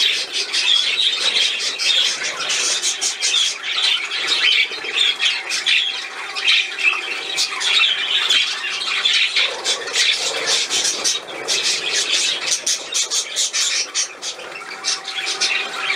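A small fountain bubbles and splashes steadily in a water bowl.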